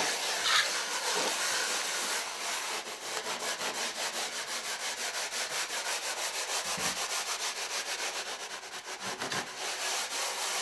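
A wooden float scrapes and rubs rhythmically over wet mortar.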